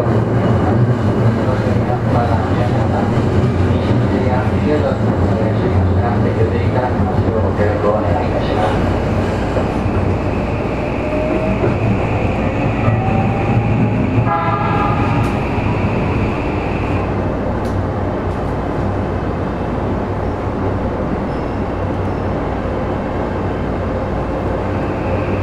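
A subway train rumbles slowly along a platform.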